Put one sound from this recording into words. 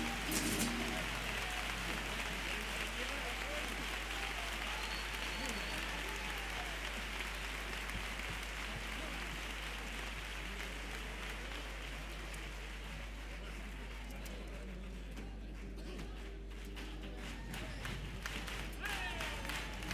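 Guitars strum along with the singing.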